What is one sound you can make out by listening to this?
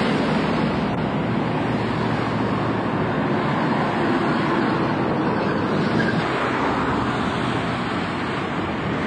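Cars and vans drive past on a street outdoors.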